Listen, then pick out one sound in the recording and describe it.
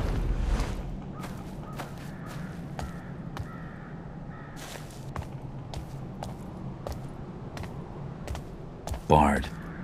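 Footsteps walk slowly across stone.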